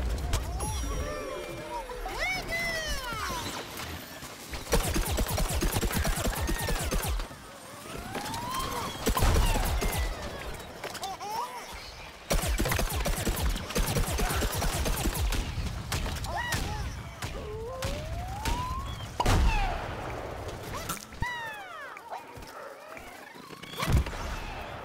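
Rapid shots fire over and over in a game.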